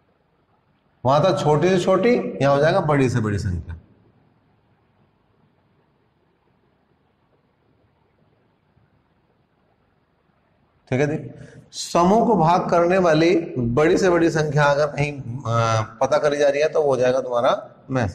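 A man speaks clearly and calmly into a close microphone, with pauses.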